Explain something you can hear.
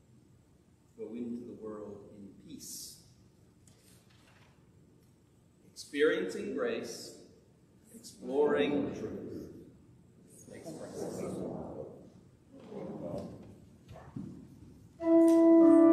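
A man reads aloud through a microphone in an echoing hall.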